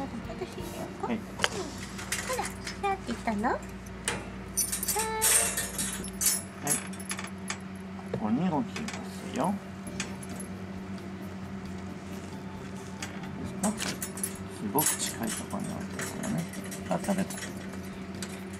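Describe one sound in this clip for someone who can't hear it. A wire cage door rattles and clicks as a hand handles it.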